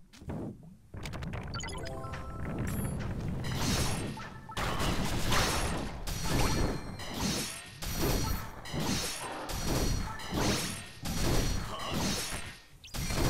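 Game battle sounds of rapid sword strikes and blasts clash.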